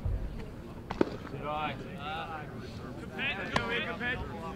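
A baseball smacks sharply into a catcher's glove.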